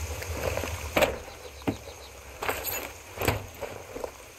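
Wooden crates clatter and knock as they are searched.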